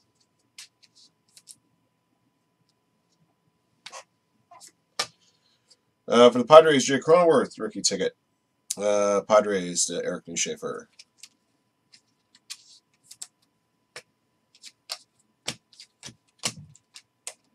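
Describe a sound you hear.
Plastic card sleeves rustle and crinkle in hands.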